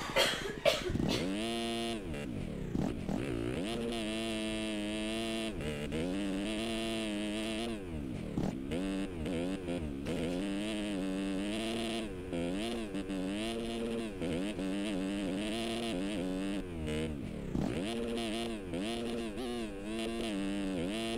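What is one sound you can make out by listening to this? A motorcycle engine revs up and down as gears shift.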